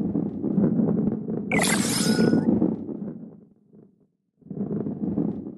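A heavy ball rolls with a low rumble along a wooden track.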